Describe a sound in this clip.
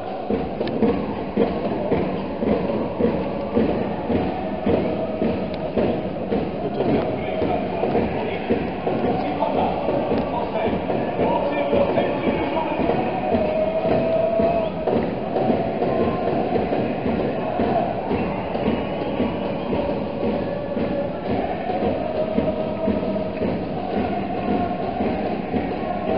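A large stadium crowd chants and sings together in rhythm, echoing under a vast roof.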